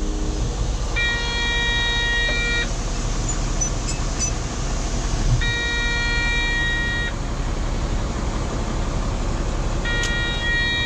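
A heavy machine's diesel engine rumbles steadily close by.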